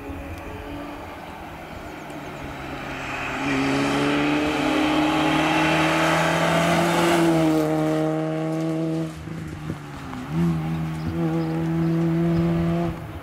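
A small four-cylinder rally car races closer at full throttle and speeds away.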